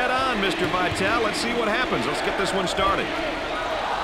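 Basketball shoes squeak sharply on a hardwood floor.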